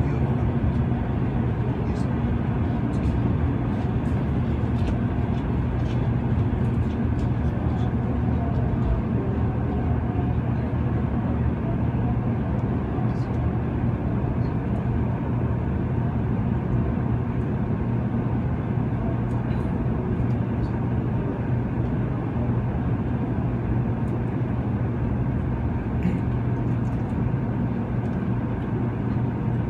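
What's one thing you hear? Wheels click and clatter over rail joints.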